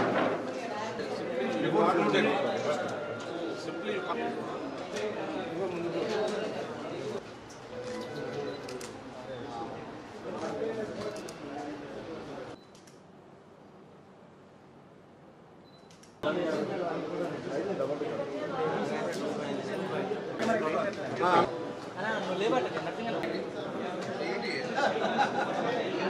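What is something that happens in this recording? Several men talk over one another nearby in a crowded room.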